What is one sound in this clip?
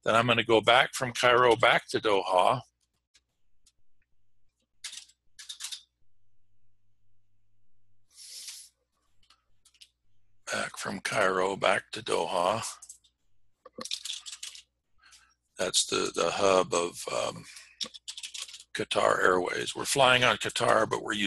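An elderly man speaks calmly and close to a microphone, with pauses.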